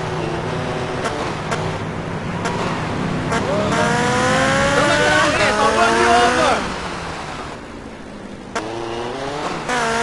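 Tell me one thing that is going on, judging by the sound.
A motorcycle engine revs up repeatedly as it speeds away.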